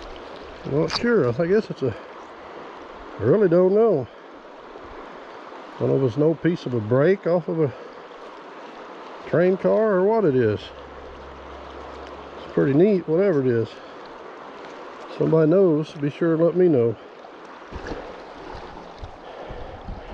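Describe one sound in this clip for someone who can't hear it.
Shallow river water flows and ripples steadily.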